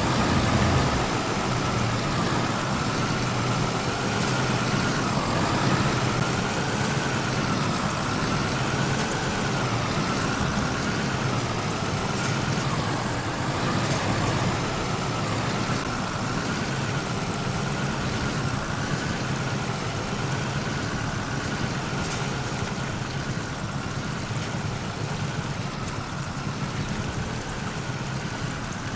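A truck engine roars steadily, its pitch wavering as it strains.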